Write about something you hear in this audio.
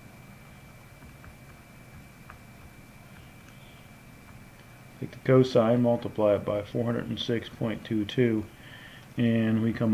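Calculator buttons click softly as they are pressed.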